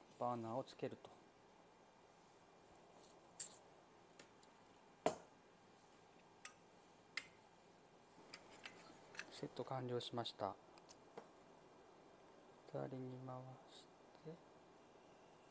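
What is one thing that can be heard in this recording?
A gas canister clicks and clacks against a small metal stove.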